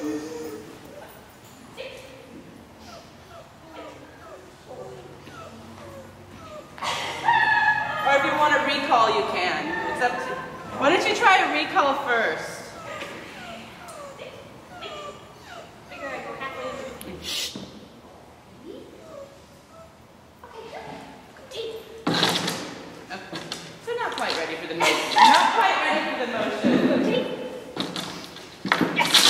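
A woman talks to a dog with animated praise in a large echoing hall.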